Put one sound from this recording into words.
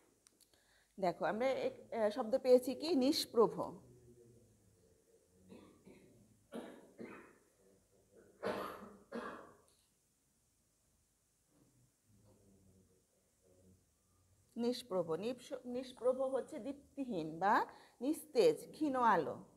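A woman speaks clearly and steadily, as if teaching a class.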